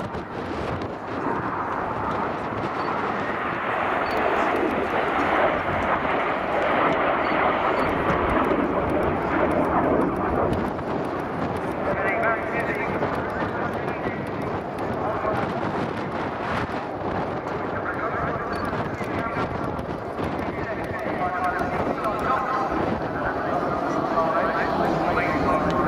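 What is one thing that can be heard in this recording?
Jet aircraft roar overhead, the noise rising and falling as they pass.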